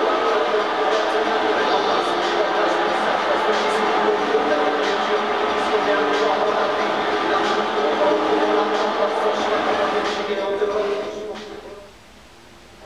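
A large crowd cheers loudly in a game.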